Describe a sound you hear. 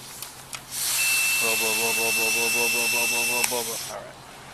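A breath tester sounds a steady high beep.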